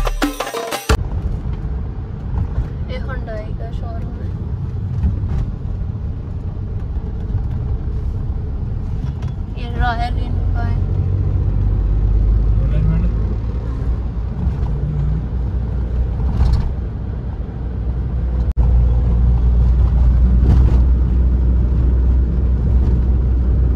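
Car tyres and engine rumble steadily, heard from inside a moving car.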